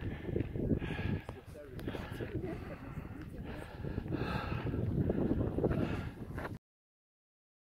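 Wind blows and buffets across an open mountainside.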